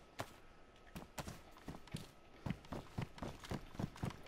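Footsteps tread quickly on a hard concrete floor.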